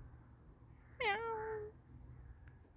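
A cat meows once nearby.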